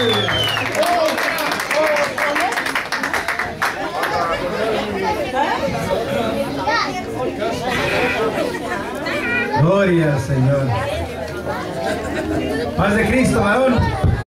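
A crowd of women and men talk and mingle.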